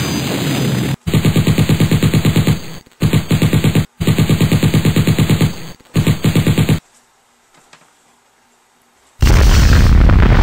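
A helicopter's rotor chops rapidly and loudly.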